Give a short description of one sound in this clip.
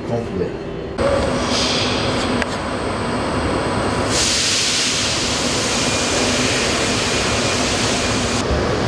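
A workshop machine hums steadily.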